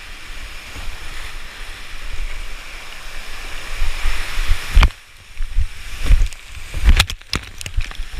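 Whitewater rushes and roars close by.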